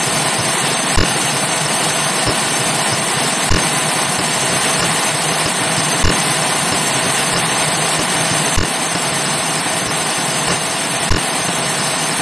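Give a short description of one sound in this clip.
Something splashes with a loud, distorted thump, again and again.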